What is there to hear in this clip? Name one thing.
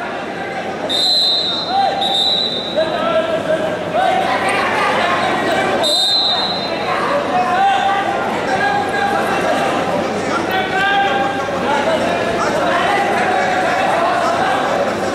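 A crowd of spectators shouts encouragement in an echoing indoor hall.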